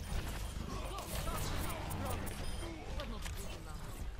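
A video game explosion bursts with a loud boom.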